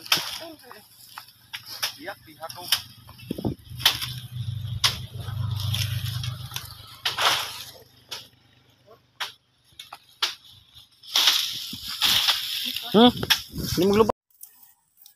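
Cut sugarcane stalks clatter and rustle as they are tossed onto a pile.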